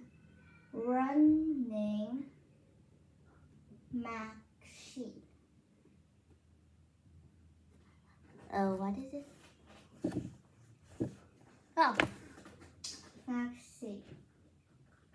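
A young girl speaks in short bursts close by.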